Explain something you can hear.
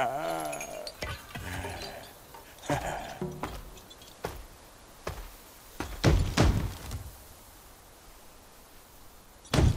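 Heavy footsteps thud on stone.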